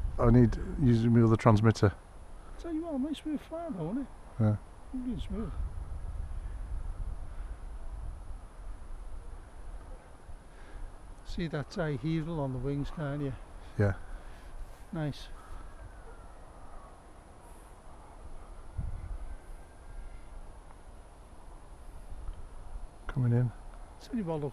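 Wind rumbles across open ground outdoors.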